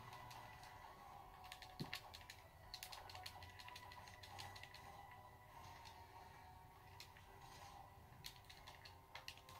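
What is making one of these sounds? A video game's battle sound effects play through a television's speakers, with hits and bursts.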